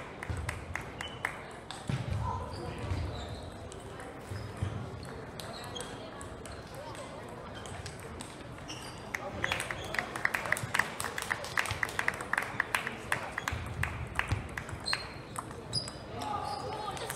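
Many table tennis balls click from other tables in a large echoing hall.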